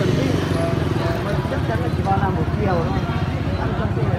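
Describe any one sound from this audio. A motorbike engine idles and hums close by.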